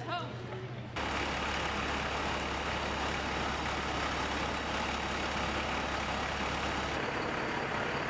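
A fire truck engine idles with a steady low rumble.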